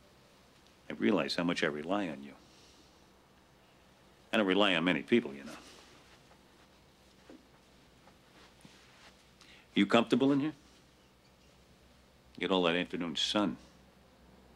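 An older man speaks calmly and gravely, close by.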